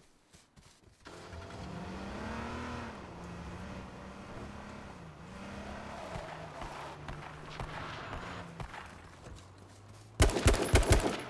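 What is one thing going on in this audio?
A car engine revs and hums as the car drives over rough ground.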